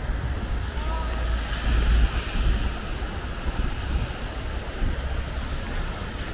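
Rain patters steadily on umbrellas and wet pavement.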